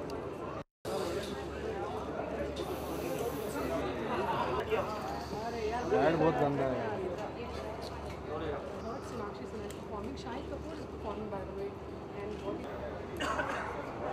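Many people chatter and call out in a noisy crowd.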